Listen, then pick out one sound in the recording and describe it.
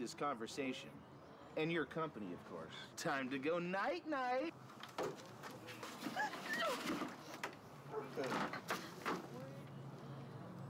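A young woman cries out and pleads in distress close by.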